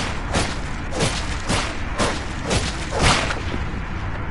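A blade swings with a series of sharp, quick whooshing strikes.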